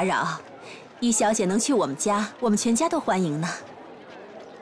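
A second young woman speaks warmly and cheerfully, close by.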